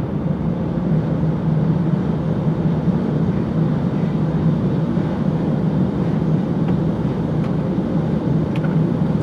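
A car engine hums steadily from inside the cabin.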